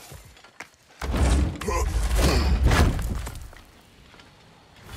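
A heavy wooden chest creaks open with a loud rush.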